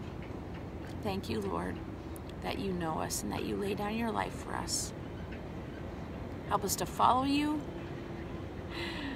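A middle-aged woman speaks calmly and close up.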